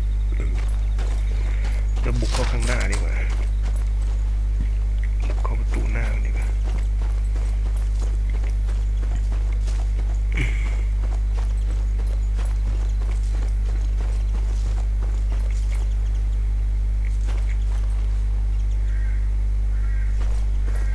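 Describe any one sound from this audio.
Footsteps thud on grass and dirt as a soldier runs.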